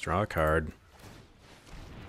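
A game's magical spell effect whooshes and chimes.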